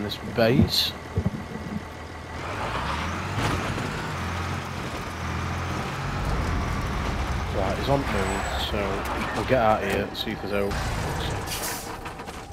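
A truck engine rumbles as the truck drives over rough ground.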